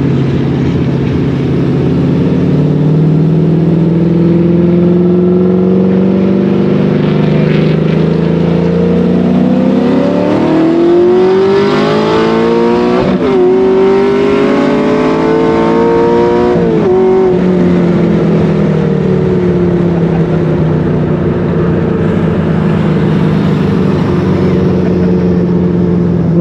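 A car engine hums inside the cabin and revs up and down.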